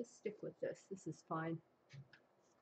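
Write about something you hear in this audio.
An elderly woman speaks calmly into a nearby microphone.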